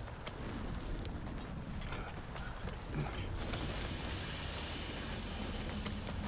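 Hands and boots scrape on rock while climbing down a cliff.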